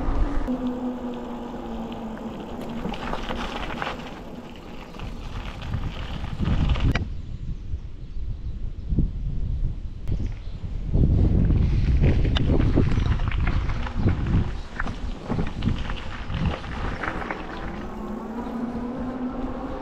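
Bicycle tyres crunch and rumble over a gravel path.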